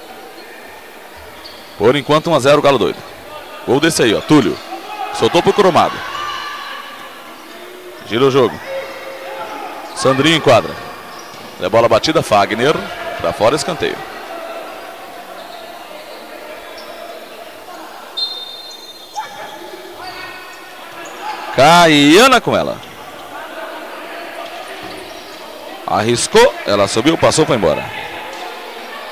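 Sneakers squeak on an indoor court.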